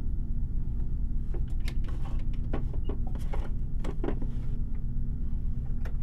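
A wooden drawer slides open with soft knocks and rattles.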